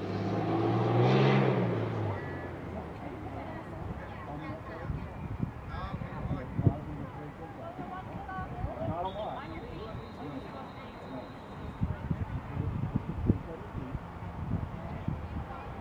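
Young women shout and call out to each other across an open field outdoors.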